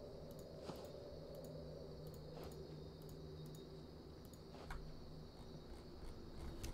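Soft clicks tap now and then as items are moved around.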